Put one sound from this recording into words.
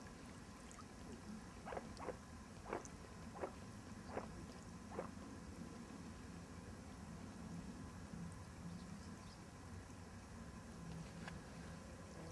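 Small waves lap gently against a pebbly lake shore.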